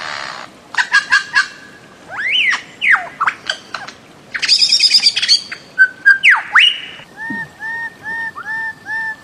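A bird calls loudly with sharp, whistling and rising cries.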